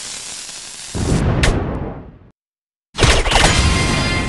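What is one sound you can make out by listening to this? Cartoon bombs burst with loud bangs.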